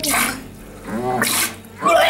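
Liquid splashes into a toilet bowl.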